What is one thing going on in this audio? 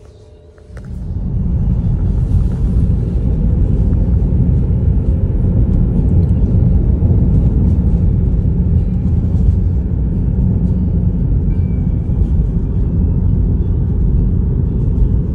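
Tyres rumble steadily on the road, heard from inside a moving car.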